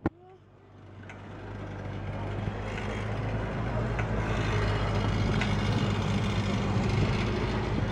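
Wind blows hard and rumbles against the microphone outdoors.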